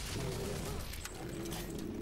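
A huge explosion booms.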